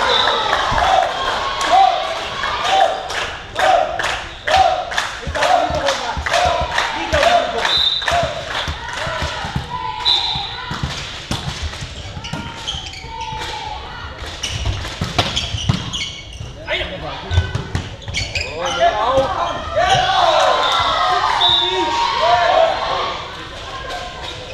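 Young men shout and call out to each other across the hall.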